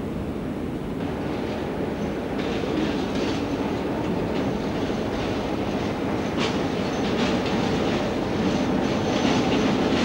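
A diesel locomotive engine rumbles loudly nearby.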